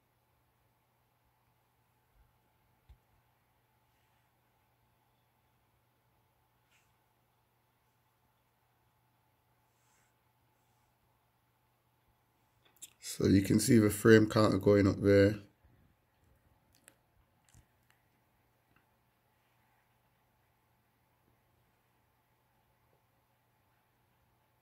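Fingertips tap lightly on a phone's touchscreen.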